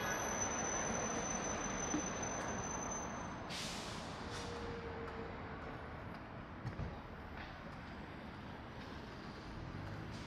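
A bus drives past on the road.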